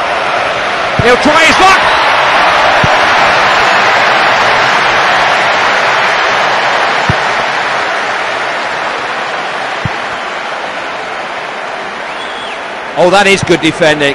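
A stadium crowd roars steadily in a large open space.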